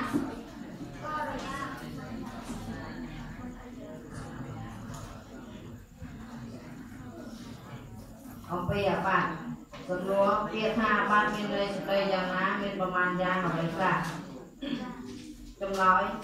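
Many young boys read aloud together in a murmuring chorus.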